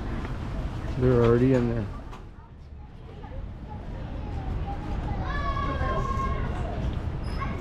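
A young child talks and calls out nearby.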